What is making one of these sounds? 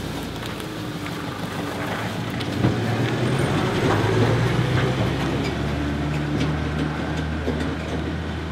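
A pickup truck engine rumbles as the truck drives away.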